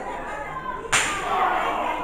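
A body slams onto a wrestling ring mat with a loud thud.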